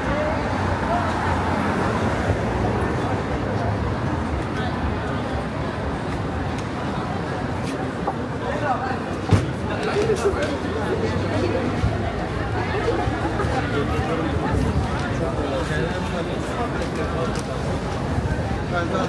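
Many people talk in a busy street crowd.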